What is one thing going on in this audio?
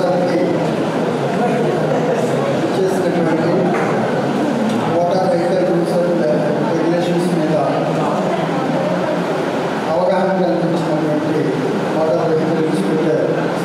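A middle-aged man speaks steadily into a microphone, heard through a loudspeaker in an echoing hall.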